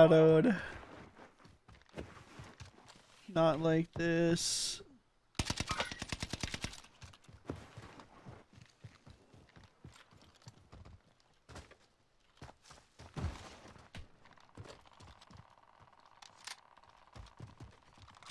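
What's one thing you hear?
Footsteps run quickly over dirt and grass.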